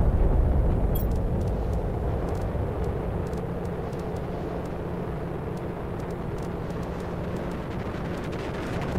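Soft clicks tick as items are moved.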